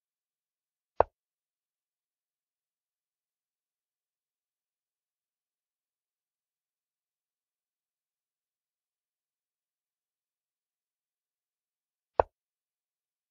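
A short digital click plays as a chess piece is moved in an online game.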